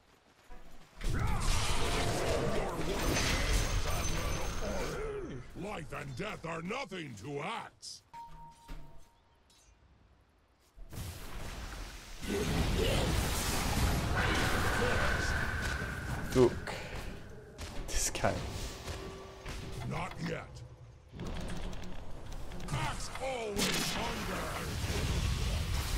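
Game spell blasts and clashing battle effects crackle and boom.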